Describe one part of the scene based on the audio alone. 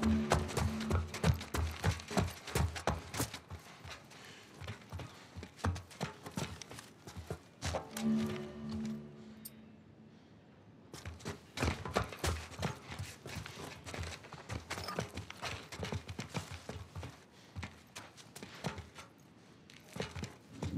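Footsteps tap quickly across a hard metal floor.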